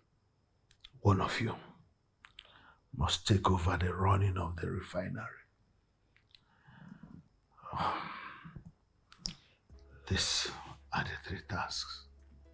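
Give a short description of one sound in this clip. A young man speaks with emotion, close by.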